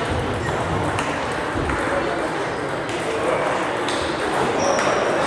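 A busy murmur of many people talking fills the hall.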